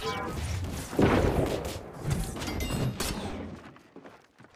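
Magical blasts crackle and boom in a fight.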